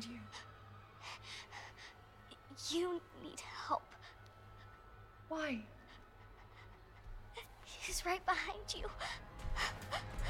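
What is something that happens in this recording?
A young girl speaks fearfully in a shaky voice.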